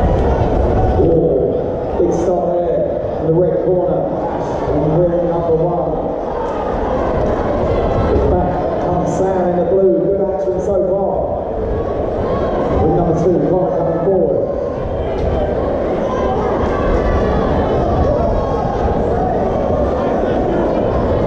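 A crowd of men and women chatters and shouts in a large echoing hall.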